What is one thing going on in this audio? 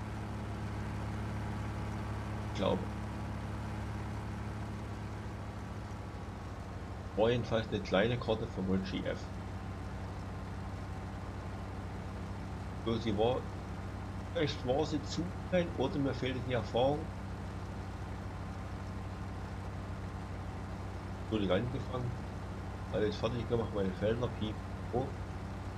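A combine harvester engine hums steadily and low.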